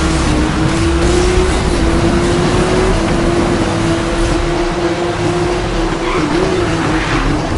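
A sports car engine roars steadily at high speed.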